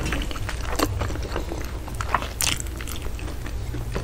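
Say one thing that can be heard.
Flaky pastry crackles and crunches as fingers tear it.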